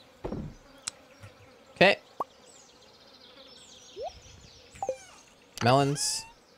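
Soft game chimes and blips sound as a menu opens and closes.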